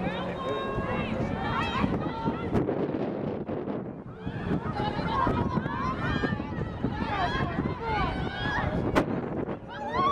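Young women shout and call out to each other across an open field.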